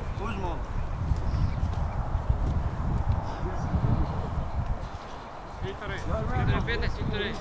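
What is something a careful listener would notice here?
Footballers shout to each other across an open field.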